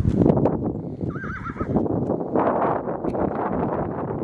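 A donkey's hooves step softly on dry dirt.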